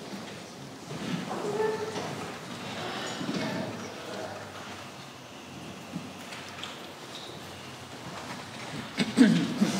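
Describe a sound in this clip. A man talks calmly in a large echoing room.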